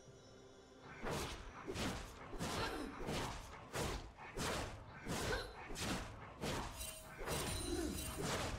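Magic blasts and weapon clashes burst in quick succession during a fight.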